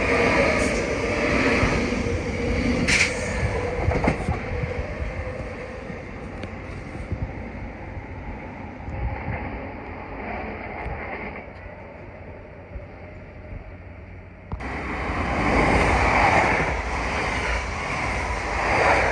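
A train rushes past close by with a loud roar.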